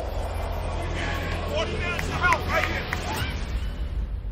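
Young women cheer and shout excitedly nearby.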